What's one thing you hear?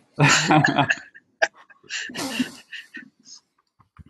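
A woman laughs softly over an online call.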